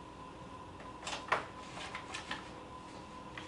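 Papers rustle and shuffle on a table.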